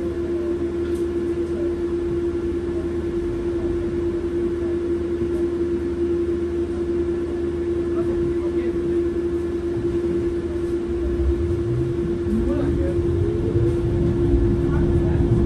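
A bus engine hums steadily with a constant whine.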